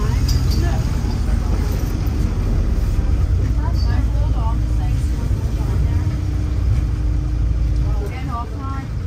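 A bus engine rumbles steadily from inside the moving bus.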